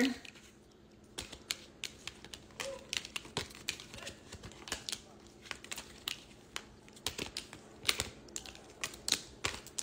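Paper bills rustle and flick as they are counted.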